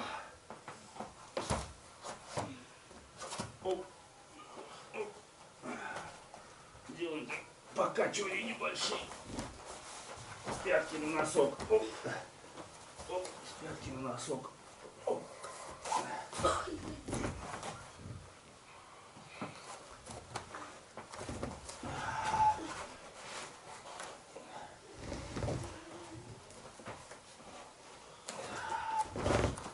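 A man speaks to a group, heard from across the room.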